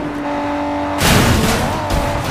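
A car crashes into something with a loud bang.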